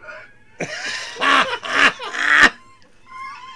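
A man laughs loudly and heartily over a microphone.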